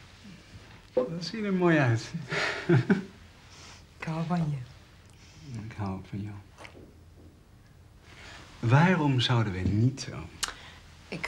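A man speaks calmly and warmly up close.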